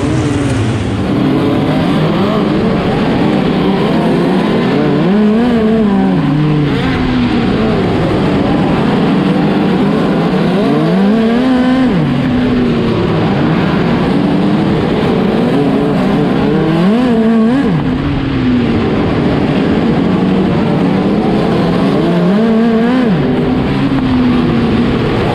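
Several race car engines roar loudly nearby, revving up and down in repeated rising and falling surges.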